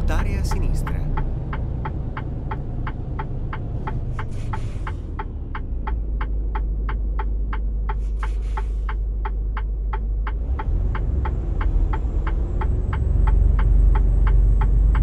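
A turn signal ticks at an even pace.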